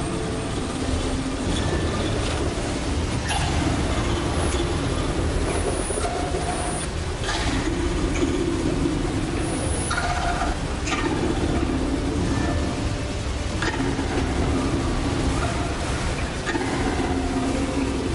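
A deep mechanical rumble drones steadily.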